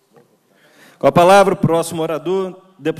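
A woman speaks into a microphone through loudspeakers in a large hall.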